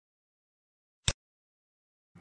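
A mouse button clicks once.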